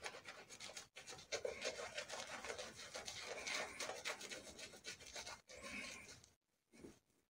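A double-edge safety razor scrapes through lathered stubble.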